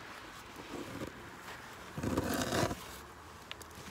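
Burlap rustles as a gloved hand pulls it from a wooden box.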